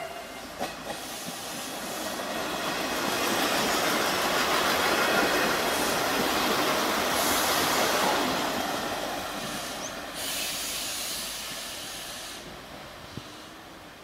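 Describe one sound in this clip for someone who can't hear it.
A train rumbles past close by, growing loud and then fading.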